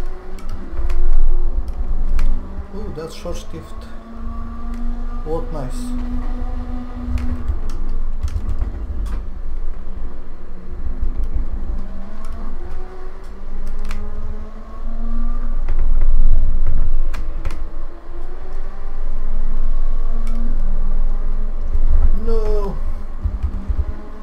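A racing car engine roars and revs up and down through gear changes.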